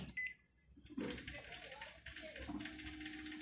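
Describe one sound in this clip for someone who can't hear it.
A scanner whirs as it feeds paper.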